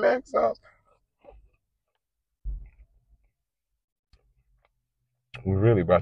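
A young man bites and chews food noisily.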